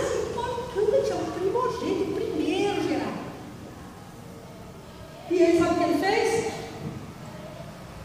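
A middle-aged woman speaks with animation through a microphone and loudspeakers in an echoing hall.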